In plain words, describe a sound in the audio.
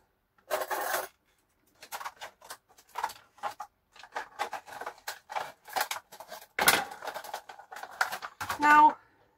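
Dishes clatter and knock in a sink.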